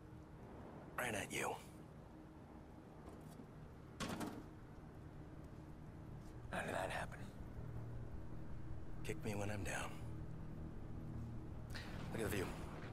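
A second man answers in short, calm remarks, close by.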